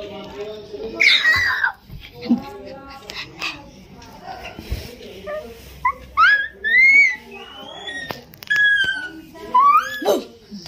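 Young boys squeal and shriek playfully up close.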